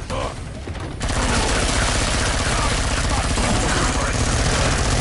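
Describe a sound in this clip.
An automatic gun fires rapid bursts.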